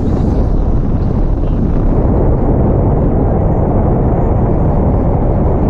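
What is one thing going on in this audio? Strong wind roars loudly across the microphone.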